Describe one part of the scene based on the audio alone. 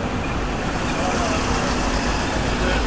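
A man shouts from the street outside.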